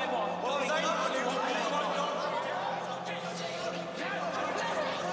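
A crowd of men and women talk and shout over each other.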